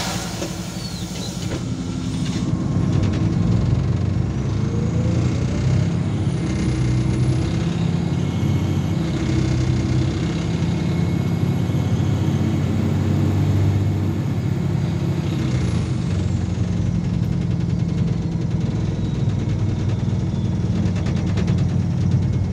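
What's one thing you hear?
A bus engine hums and rumbles steadily from inside the bus.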